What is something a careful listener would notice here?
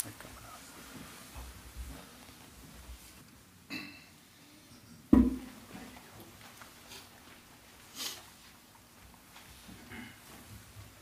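People shuffle their feet and move about in a room.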